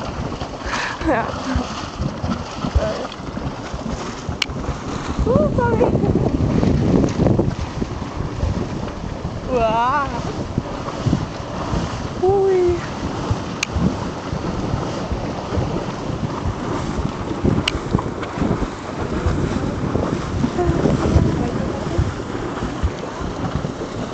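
Steam hisses and roars steadily from vents in the ground.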